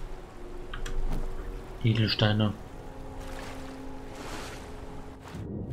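Water splashes and swishes as a swimmer moves through it.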